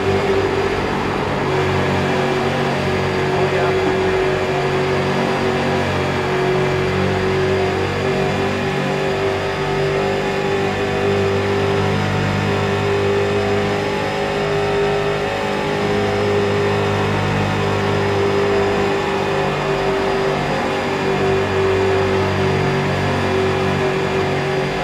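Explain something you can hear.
A race car engine roars steadily at high speed, rising and falling slightly in pitch.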